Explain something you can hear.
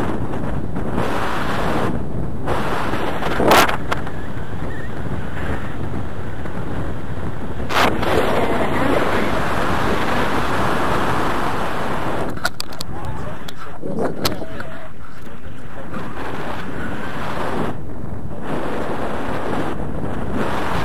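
Strong wind roars steadily across a microphone outdoors.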